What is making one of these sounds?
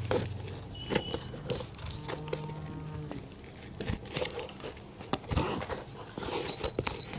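Thread is pulled taut through leather with soft rubbing and tugging sounds.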